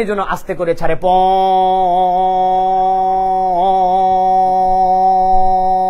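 A man sings a long, steady held note through a microphone.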